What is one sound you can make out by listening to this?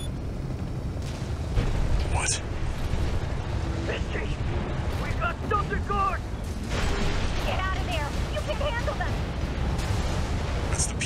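Heavy gunfire and explosions boom and crackle.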